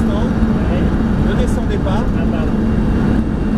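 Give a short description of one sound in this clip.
A man talks with animation inside a car.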